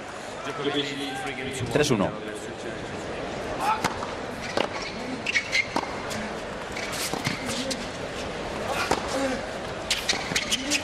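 A large crowd murmurs in an open stadium.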